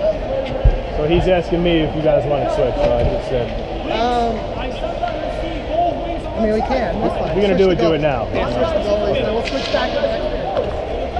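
A middle-aged man talks with animation close by.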